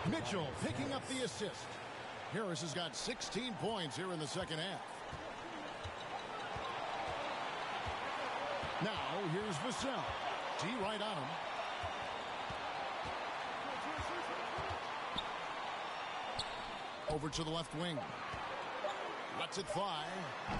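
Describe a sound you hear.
A crowd cheers and murmurs throughout a large arena.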